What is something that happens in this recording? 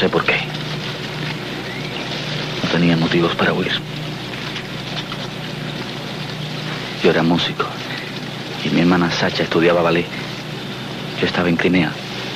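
A young man speaks calmly and quietly, close by.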